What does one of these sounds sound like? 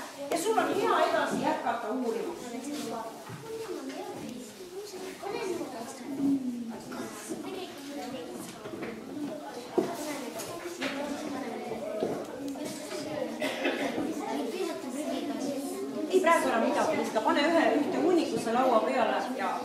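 A woman speaks clearly to a group of children.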